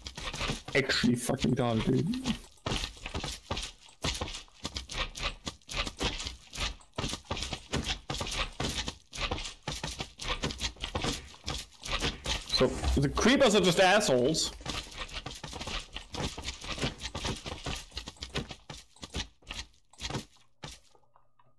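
Rapid sword hits and slime squelches sound in quick bursts.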